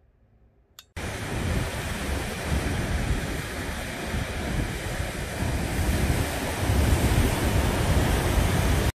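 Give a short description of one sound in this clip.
Waves crash and roar steadily against a rocky shore.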